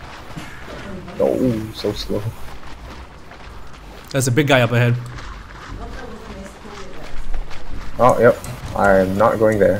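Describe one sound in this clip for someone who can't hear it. Water splashes softly with wading steps.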